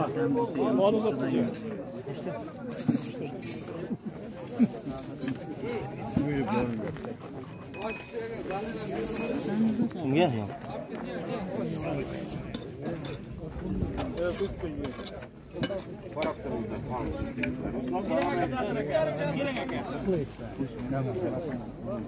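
Dishes and cutlery clink on a table.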